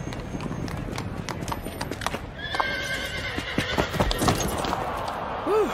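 Hooves clop on cobblestones.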